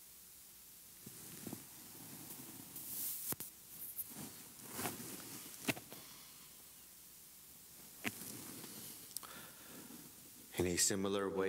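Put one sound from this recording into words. A man speaks quietly and slowly, heard through a microphone in a reverberant room.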